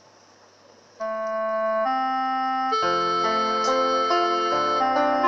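Karaoke music starts playing loudly through loudspeakers.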